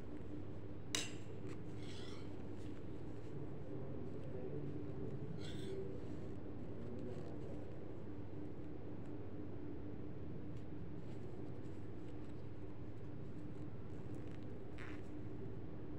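Knitting needles click and tap softly now and then.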